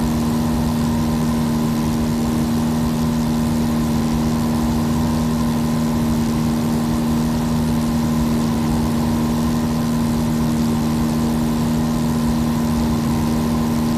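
A small propeller aircraft engine drones steadily.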